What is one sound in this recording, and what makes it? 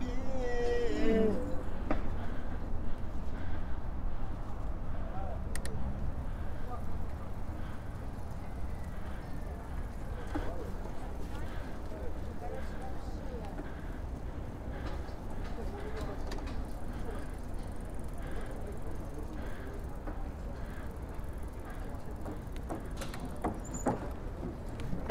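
Wind rumbles steadily against a moving bicycle rider.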